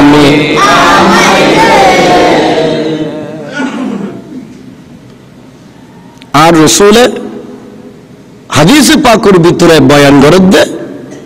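A man preaches loudly into a microphone, his voice ringing through loudspeakers in an echoing space.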